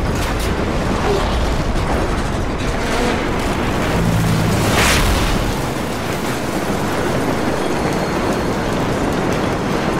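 Gunfire crackles in rapid bursts, echoing in a tunnel.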